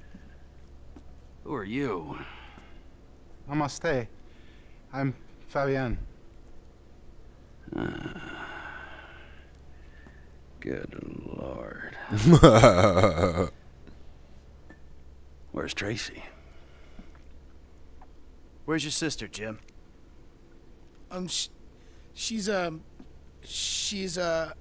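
A second man speaks quietly, close by.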